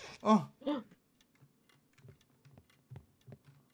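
Footsteps thud slowly.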